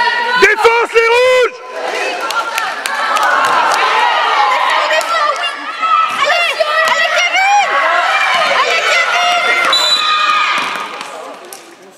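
Children shout and cheer excitedly in a large echoing hall.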